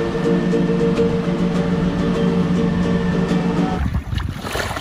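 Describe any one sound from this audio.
A man strums a ukulele.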